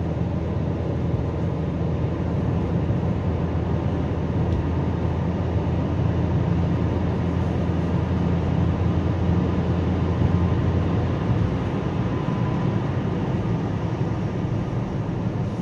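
Tyres rumble steadily on the road.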